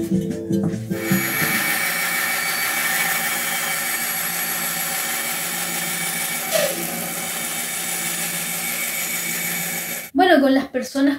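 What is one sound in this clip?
A band saw whirs steadily as it cuts wood.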